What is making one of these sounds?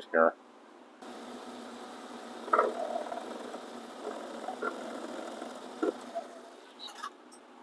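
A lathe runs with a steady, low whir.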